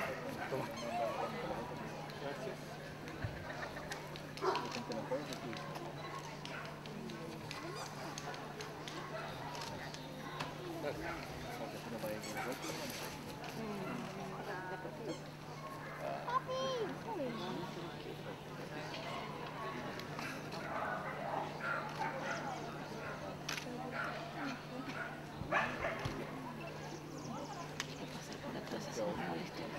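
Men and women chatter in a crowd outdoors.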